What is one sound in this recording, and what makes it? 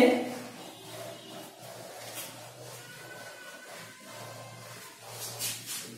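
A cloth eraser rubs across a whiteboard.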